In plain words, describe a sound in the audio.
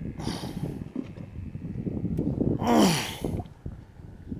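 A man handles a fishing line over stones with soft rustling.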